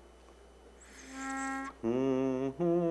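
A pitch pipe sounds a short note.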